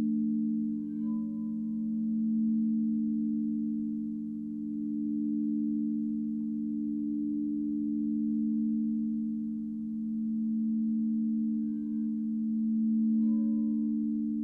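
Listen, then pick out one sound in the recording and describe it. A crystal bowl is struck lightly with a soft ring.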